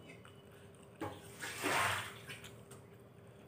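A young woman slurps noodles loudly, close by.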